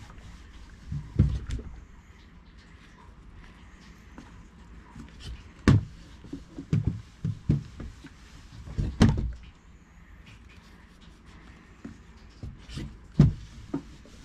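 Paper squares rustle and tap as they are handled.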